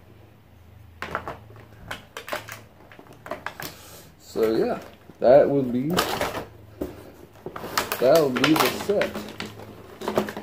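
Cardboard and plastic packaging rustles and crinkles.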